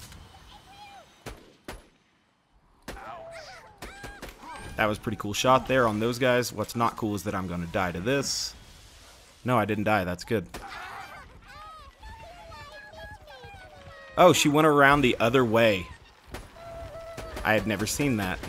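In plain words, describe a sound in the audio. A sniper rifle fires sharp shots.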